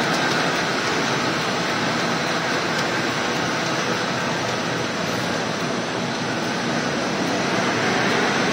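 A machine whirs and clatters steadily and loudly.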